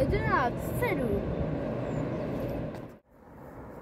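A boy talks close by.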